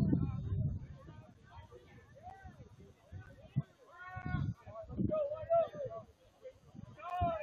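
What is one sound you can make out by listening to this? Young men talk and call out to each other at a distance outdoors.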